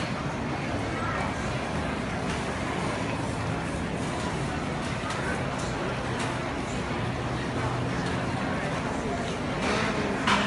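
Suitcase wheels roll over a smooth floor.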